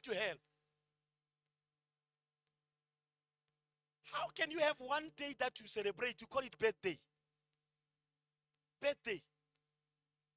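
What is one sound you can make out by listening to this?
A man speaks with animation into a microphone, in bursts with pauses.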